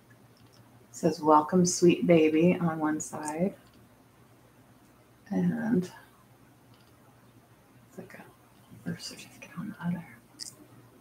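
A middle-aged woman talks calmly and close to the microphone, pausing now and then.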